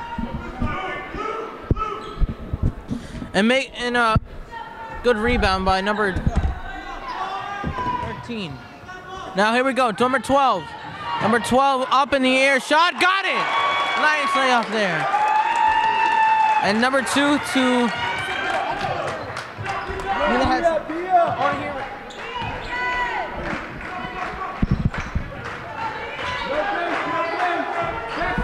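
A crowd shouts and cheers in a large echoing gym.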